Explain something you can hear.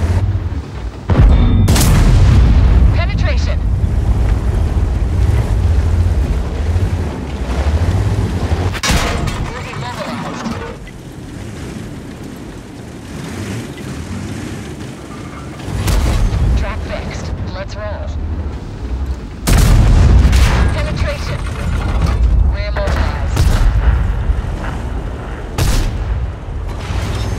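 A tank engine rumbles deeply as the tank drives.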